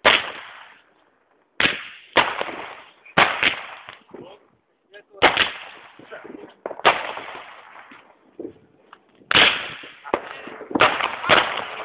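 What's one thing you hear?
Fireworks burst with loud bangs that echo away.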